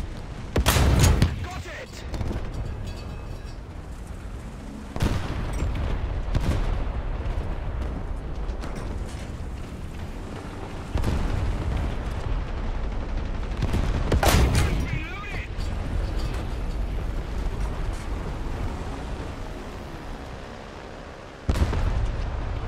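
Cannon shots boom with sharp blasts.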